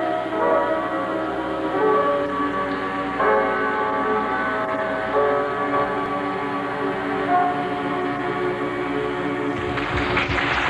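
A group of young men and women sings together.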